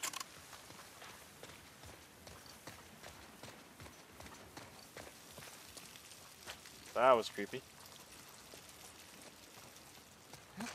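Footsteps rustle softly through grass and over debris.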